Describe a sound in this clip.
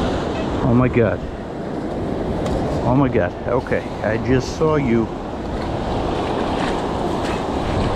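A metal scoop digs into wet sand.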